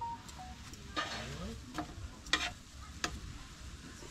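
Meat sizzles on a hot griddle.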